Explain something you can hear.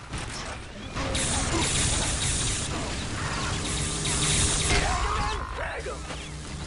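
Guns fire rapidly in a video game.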